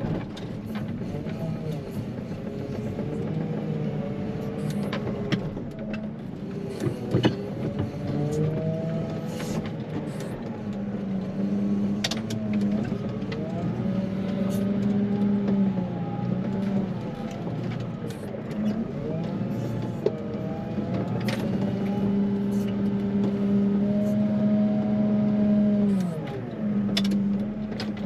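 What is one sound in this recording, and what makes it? Hydraulics whine as a plough blade shifts.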